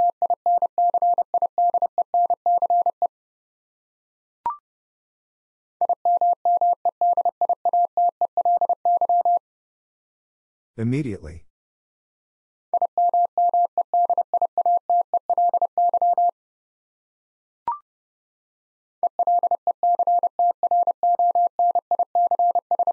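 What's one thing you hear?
Morse code beeps out in rapid bursts of short and long tones.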